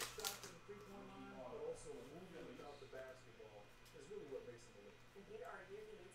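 Trading cards slide and rustle against each other in a hand.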